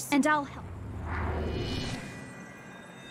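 A magical whoosh rises and fades.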